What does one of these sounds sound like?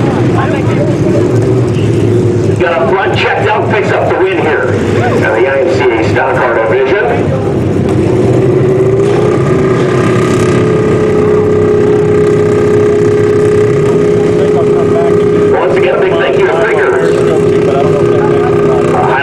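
Race car engines roar loudly.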